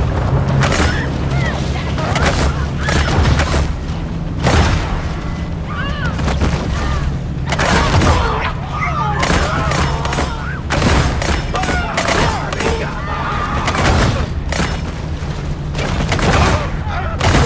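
Water splashes and churns as a shark thrashes.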